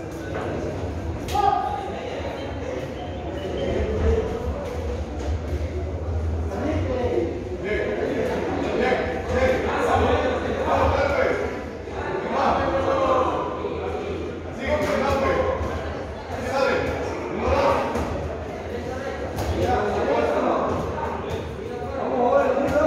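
Men and women shout and call out in a large echoing hall.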